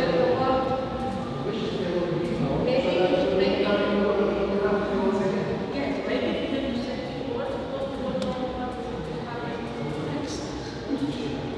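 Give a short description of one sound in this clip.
A woman speaks calmly into a microphone over loudspeakers in an echoing hall.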